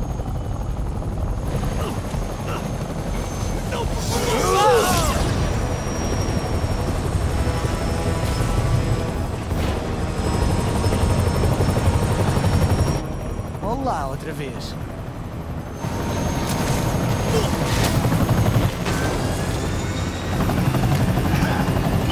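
A helicopter's rotor thumps and whirs steadily.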